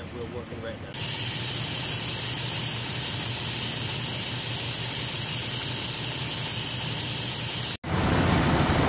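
Water gushes and splashes from a leaking hydrant coupling.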